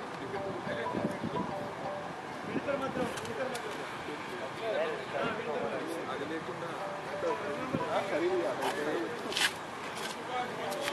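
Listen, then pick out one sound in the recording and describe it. Men's voices call out across an open field at a distance.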